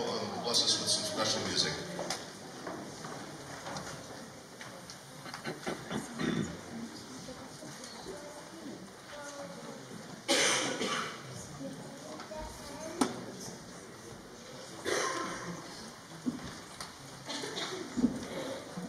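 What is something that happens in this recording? Adult men and women chat quietly nearby in a large echoing room.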